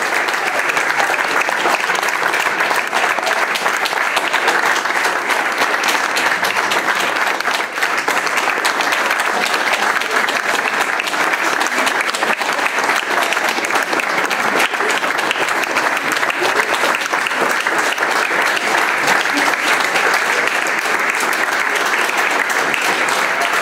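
An audience applauds steadily in a room.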